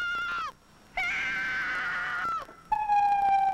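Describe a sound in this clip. A young woman screams loudly in terror.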